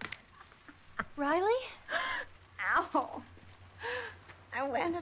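A teenage girl shouts with animation nearby.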